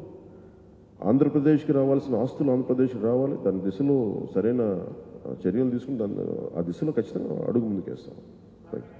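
A man speaks with animation into a microphone, close and loud.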